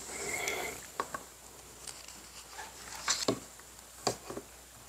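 Paper rustles as a page is handled.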